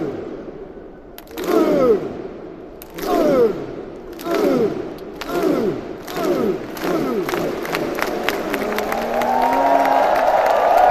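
A large crowd of fans chants loudly in repeated bursts in a big open stadium.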